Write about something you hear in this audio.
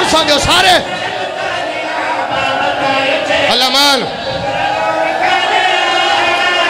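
A crowd of men chant together loudly.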